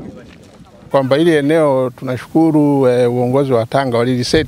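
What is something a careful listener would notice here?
A middle-aged man speaks calmly into microphones close by, outdoors.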